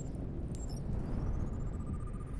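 A thin electronic tone slowly rises in pitch.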